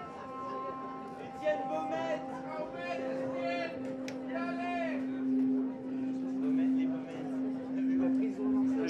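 A synthesizer plays warbling, bending electronic tones.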